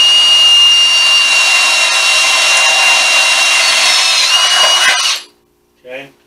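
A cordless drill whirs steadily, then stops.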